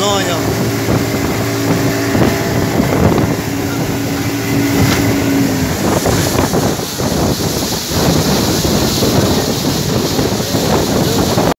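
An outboard motor drones steadily close by.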